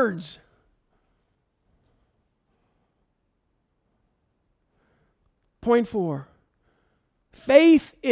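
A middle-aged man speaks calmly through a microphone, pausing between phrases.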